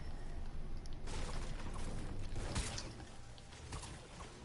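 A pickaxe strikes a tree trunk with sharp, woody knocks.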